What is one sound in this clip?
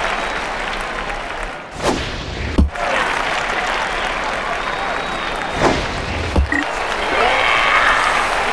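A stadium crowd cheers and murmurs steadily.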